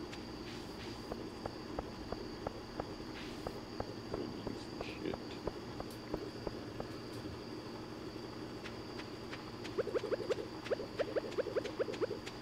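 Footsteps tap quickly along a path.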